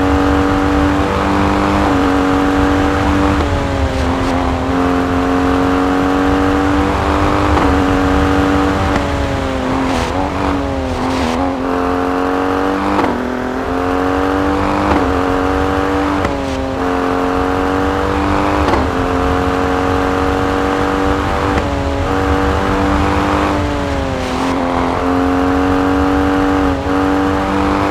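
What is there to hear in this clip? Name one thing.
A rally SUV engine's revs drop and climb again as gears shift up and down.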